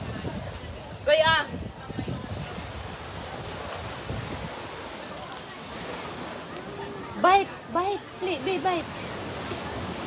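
A young girl calls out in a high voice nearby.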